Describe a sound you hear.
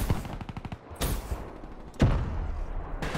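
A knife slashes with a swish.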